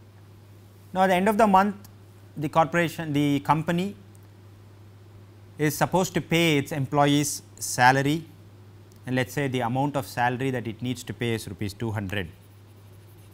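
A man speaks calmly and clearly into a clip-on microphone, as if lecturing.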